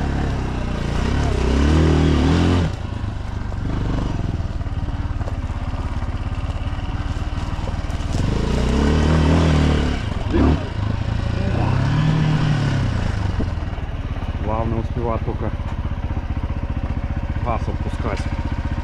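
A dirt bike engine putters and revs in short bursts close by.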